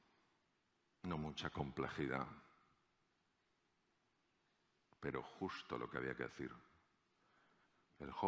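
A middle-aged man speaks with animation into a microphone, in short phrases with pauses.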